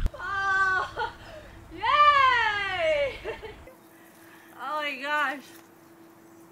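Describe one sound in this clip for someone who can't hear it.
A young woman laughs loudly nearby.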